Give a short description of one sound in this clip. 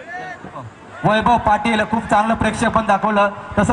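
A man announces loudly through a loudspeaker.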